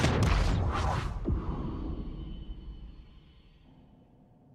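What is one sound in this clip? A spaceship roars past with a deep rumble that fades away.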